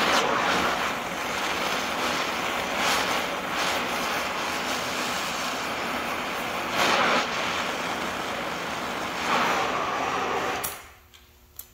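A cutting torch roars steadily with a loud hiss.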